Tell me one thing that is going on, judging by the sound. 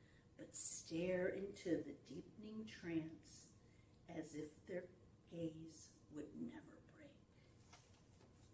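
An elderly woman reads aloud calmly, close to a microphone.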